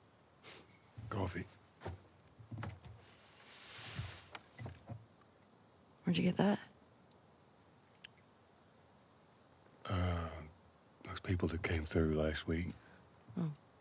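A middle-aged man answers in a low, tired voice, close by.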